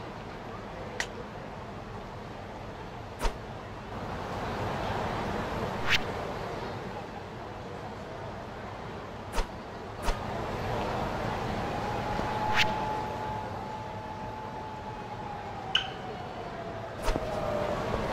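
Short electronic menu clicks sound now and then.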